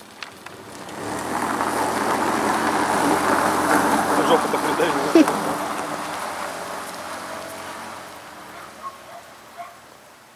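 A car engine revs as the car pulls away over snow.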